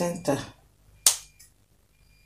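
Scissors snip sharply once.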